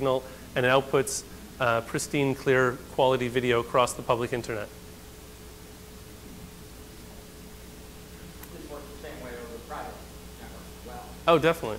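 A man speaks calmly into a microphone, heard over a loudspeaker.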